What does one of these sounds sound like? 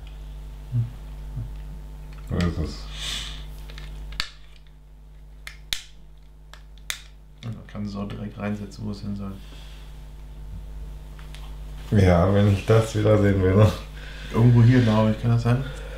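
Plastic toy bricks click and clatter as they are handled.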